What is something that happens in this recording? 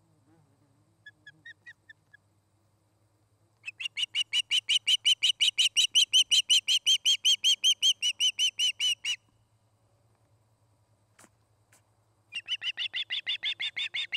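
A bird of prey calls close by in rapid bursts of shrill, piping chirps.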